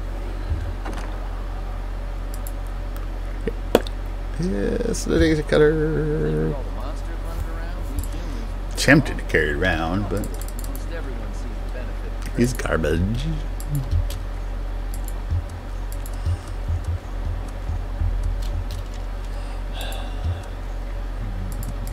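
Soft interface clicks tick as items are scrolled through.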